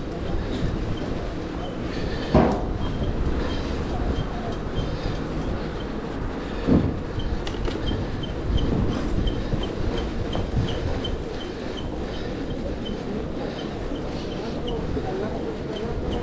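A bicycle ticks steadily as it rolls along.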